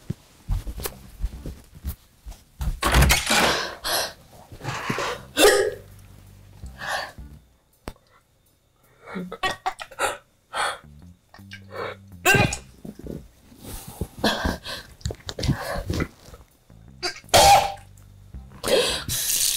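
Bedding rustles as a man shifts under a blanket.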